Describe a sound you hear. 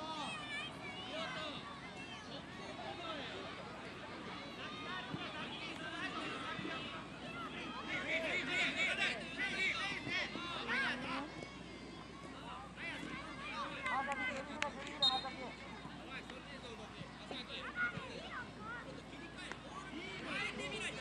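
Spectators chatter and cheer nearby outdoors.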